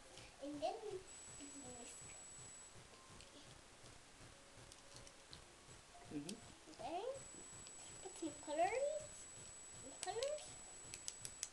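A little girl talks in a high, excited voice close by.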